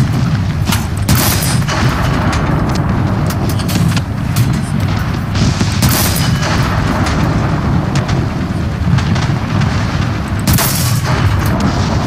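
A tank cannon fires loud booming shots now and then.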